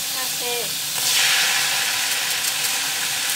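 Noodles drop into a hot pan with a loud burst of sizzling.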